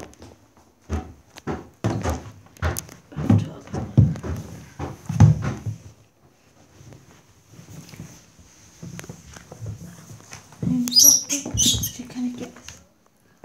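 Close, muffled bumps and rustling come from a phone being handled.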